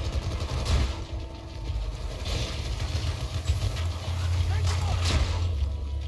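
A heavy gun fires in loud bursts.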